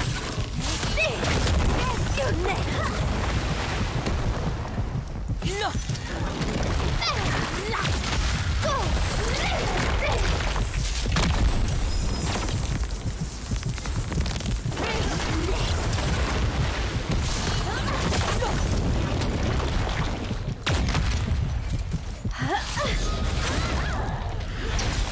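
Spells and fiery explosions boom and crackle in a game battle.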